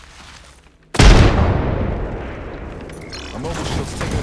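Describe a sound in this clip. A loud blast booms nearby and rumbles away.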